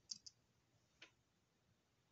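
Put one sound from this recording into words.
A knife is set down on a table with a soft knock.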